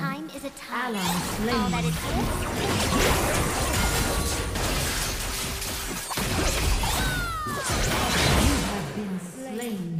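Video game spell effects whoosh and clash in a fight.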